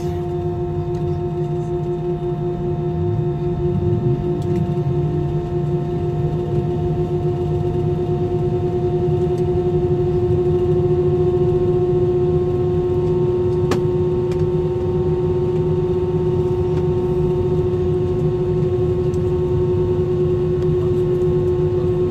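An aircraft rumbles as it taxis.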